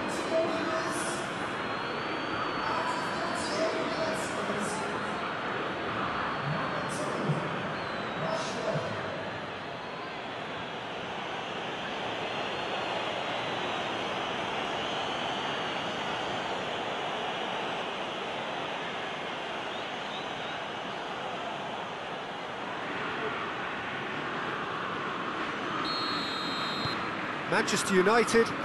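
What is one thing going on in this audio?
A stadium crowd roars and cheers.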